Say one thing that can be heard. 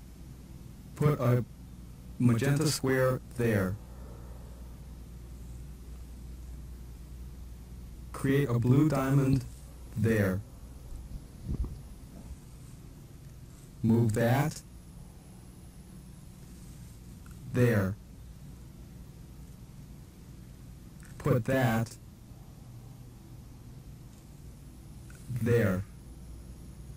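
A man gives short spoken commands in bursts, heard over a microphone.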